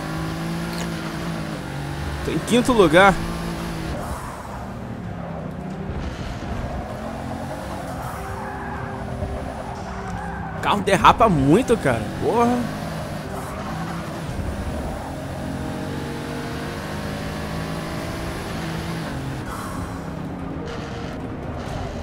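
A car engine roars steadily, rising and falling in pitch as the gears change.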